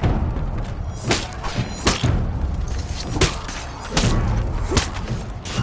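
Shields thud under heavy blows.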